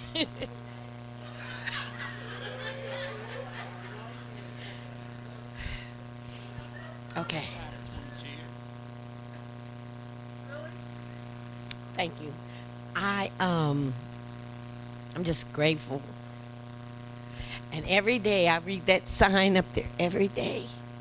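A woman speaks with animation through a microphone in a large echoing room.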